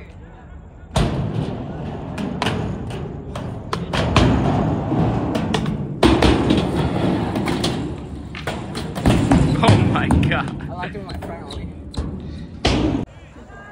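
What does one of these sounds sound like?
Skateboard trucks grind and clack against metal coping.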